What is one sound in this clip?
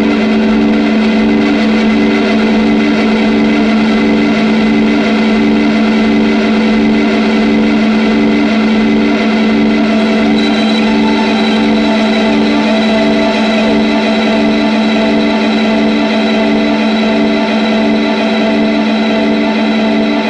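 A sustained electric guitar tone pulses steadily through an effects pedal.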